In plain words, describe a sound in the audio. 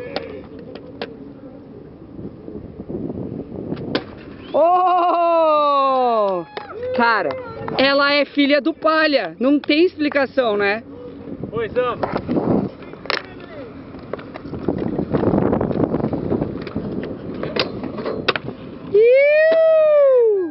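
Inline skate wheels roll and grind on concrete.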